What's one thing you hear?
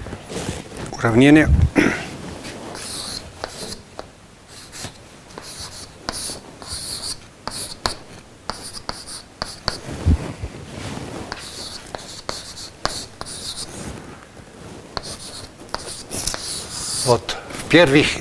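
An elderly man speaks in a lecturing tone.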